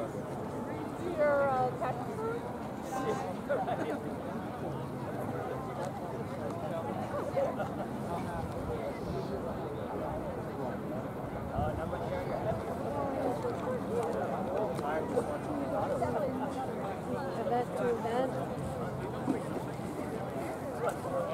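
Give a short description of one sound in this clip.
A crowd of people chatters and calls out at a distance outdoors.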